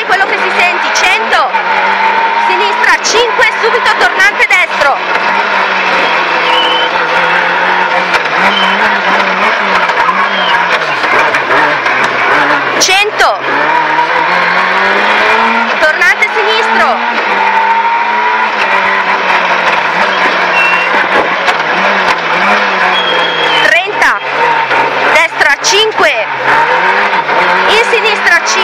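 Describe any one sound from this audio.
A rally car engine roars loudly from inside the car, revving up and down.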